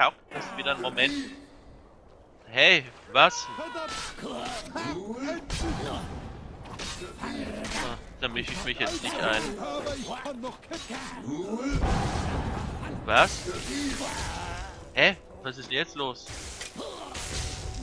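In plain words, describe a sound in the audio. A dragon breathes out a rushing blast of frost.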